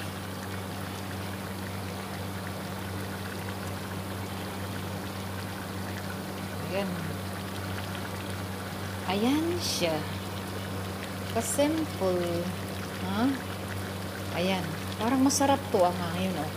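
A wooden spoon stirs thick stew in a metal pot.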